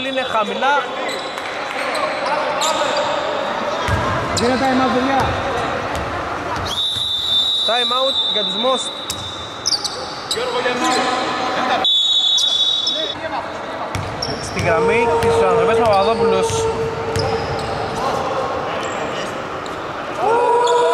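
Men call out to one another across an echoing hall.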